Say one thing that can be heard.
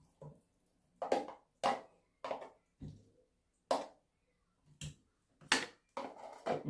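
A plastic container taps against a glass bowl.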